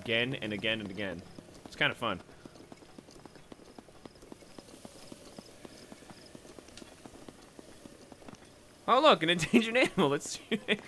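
Footsteps patter quickly on dry sand.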